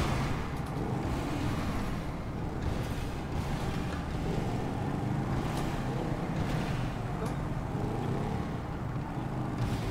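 A motorcycle engine revs and roars steadily, heard up close.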